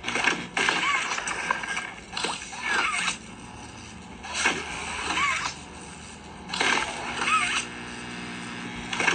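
A video game plays bursts of electronic sound effects from a tablet speaker.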